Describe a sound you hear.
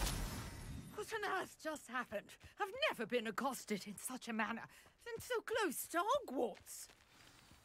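An elderly woman speaks with agitation.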